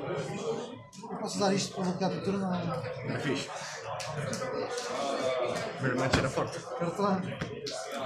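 Cards slap softly onto a play mat.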